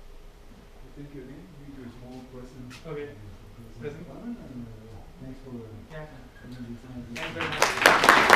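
A man speaks calmly in a large echoing hall.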